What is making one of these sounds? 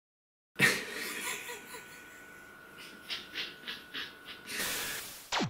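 A man laughs softly close by.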